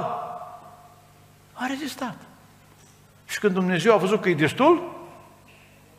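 An elderly man speaks calmly into a microphone in a large echoing hall.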